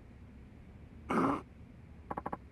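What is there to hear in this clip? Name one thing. A man cries out loudly in pain.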